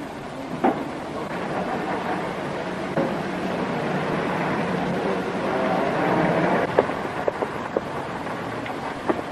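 A car engine runs as an old car pulls away and drives off.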